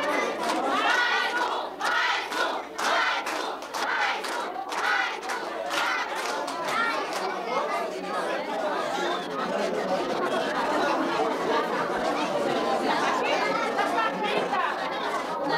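Young girls sing together.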